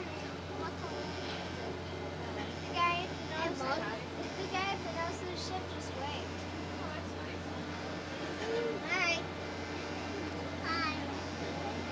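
A ship's engine hums low and steady nearby.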